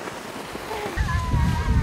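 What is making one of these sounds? An inflatable sled scrapes and hisses over snow.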